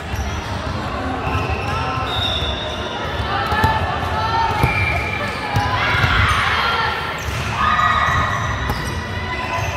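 A volleyball is hit with sharp slaps.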